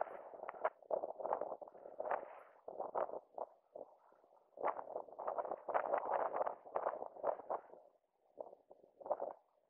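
Inline skate wheels roll and scrape on asphalt in rhythmic strokes, close by.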